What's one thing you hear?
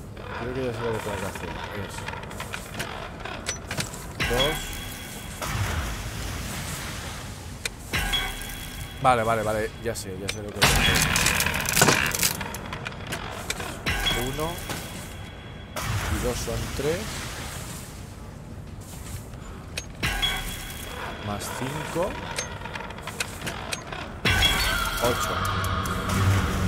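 A large clock mechanism clunks and whirs as its hand turns.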